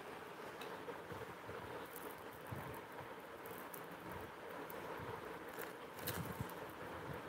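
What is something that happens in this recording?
Plastic packets crinkle and rustle.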